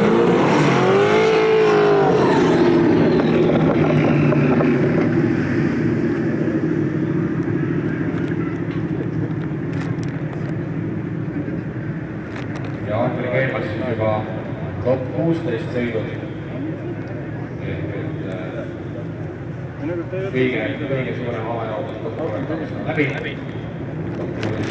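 Car engines roar and rev loudly.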